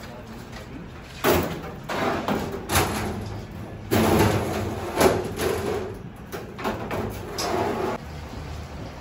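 Metal lids clank and scrape against each other.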